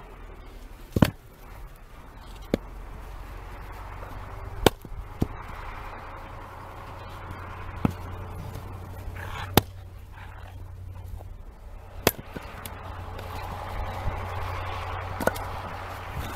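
An axe splits logs with sharp cracks.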